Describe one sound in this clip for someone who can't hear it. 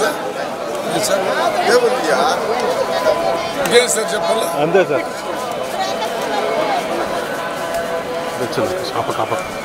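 A crowd of men and women chatters loudly all around, outdoors.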